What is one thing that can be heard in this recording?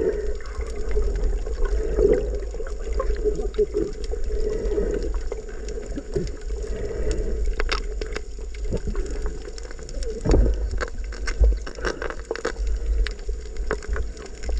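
Bubbles from a diver's breathing gurgle underwater in bursts.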